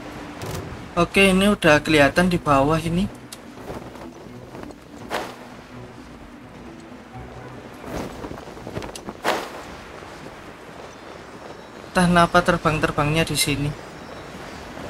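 A young man talks animatedly into a microphone, close by.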